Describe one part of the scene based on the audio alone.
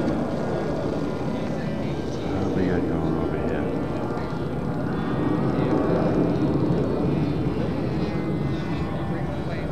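A model airplane engine buzzes as the plane taxis.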